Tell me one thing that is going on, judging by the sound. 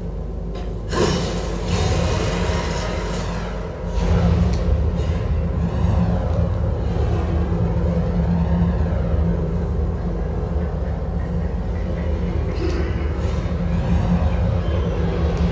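A video game's magical blasts roar and rush through a loudspeaker.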